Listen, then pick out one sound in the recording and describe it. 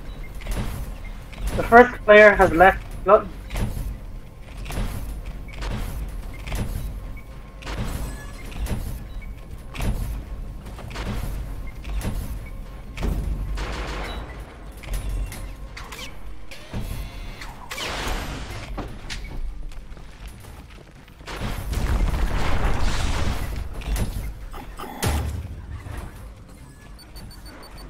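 Game gunfire and explosions crackle in quick bursts.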